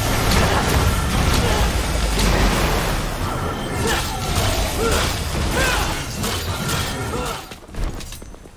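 Loud fight sounds from a game crash and roar with heavy booms.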